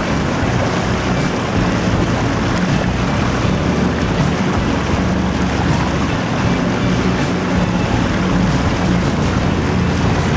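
A boat motor drones steadily close by.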